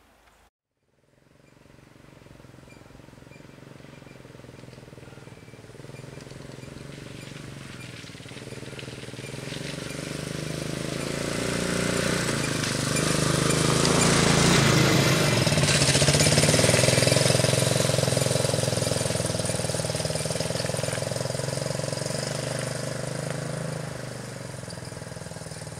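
A quad bike engine drones as it approaches, growing louder, then passes and fades into the distance.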